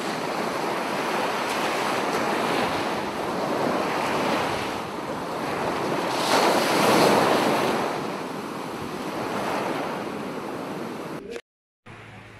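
Waves wash and splash over rocks close by.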